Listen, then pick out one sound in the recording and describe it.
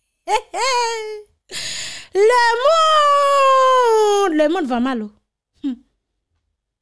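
A young woman exclaims in a loud, sing-song voice into a microphone.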